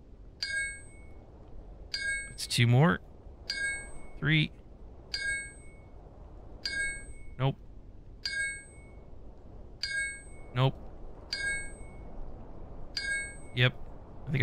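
A pickaxe strikes rock again and again with sharp ringing chinks.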